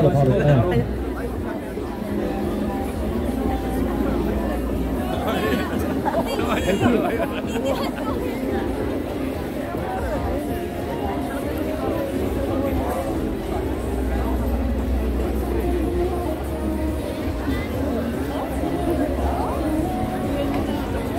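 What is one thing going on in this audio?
Music plays loudly through a loudspeaker outdoors.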